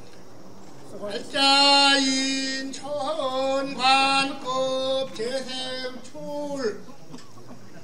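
A man chants in a loud, drawn-out voice outdoors.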